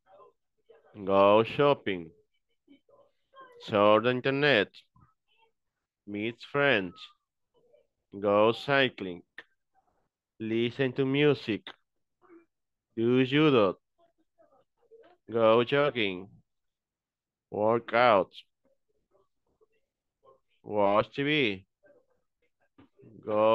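A man reads out short phrases one by one over an online call, with pauses between them.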